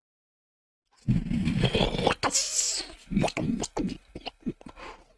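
A young man talks with excitement into a close microphone.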